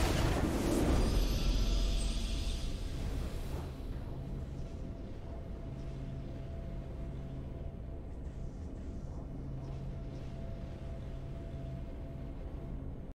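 Soft game music hums steadily.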